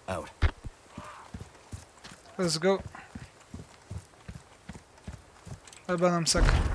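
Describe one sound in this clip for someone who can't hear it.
Footsteps crunch steadily on gravel.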